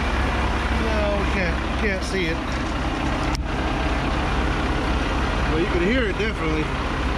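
A diesel engine idles with a steady low rumble nearby.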